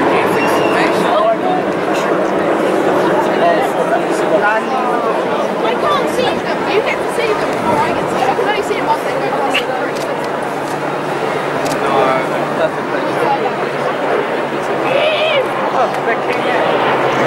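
A large crowd chatters outdoors all around.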